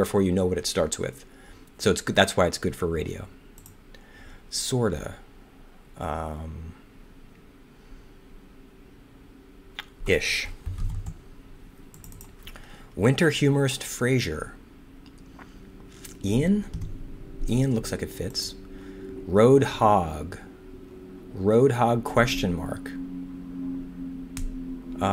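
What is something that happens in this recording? A man talks calmly and thoughtfully into a close microphone, with pauses.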